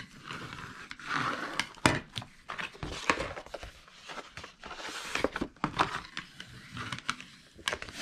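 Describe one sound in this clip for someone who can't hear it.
A plastic scraper rubs along a paper crease.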